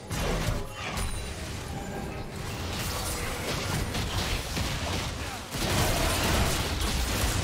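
Game combat effects crackle and boom as characters fight.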